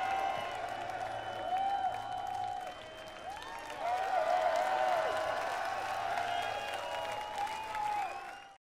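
Many people in a crowd whistle shrilly.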